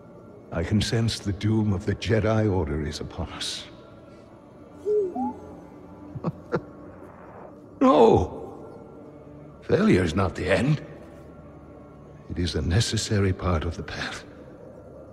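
An elderly man speaks calmly and solemnly.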